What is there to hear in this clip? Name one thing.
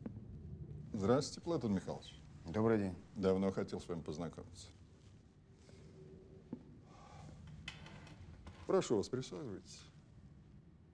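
An elderly man speaks in a low voice.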